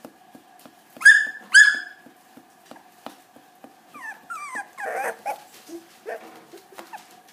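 A puppy whines and yelps in short high cries.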